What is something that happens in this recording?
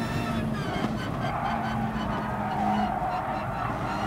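Tyres squeal through a fast corner.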